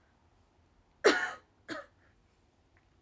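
A young woman lets out two short, loud cries close to a microphone.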